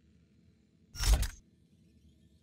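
A video game menu whooshes as a panel opens.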